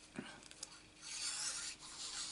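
A glue bottle squeezes with a soft hiss.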